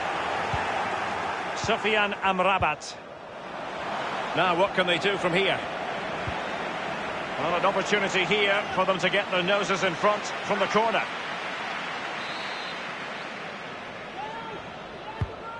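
A crowd roars steadily in a large stadium.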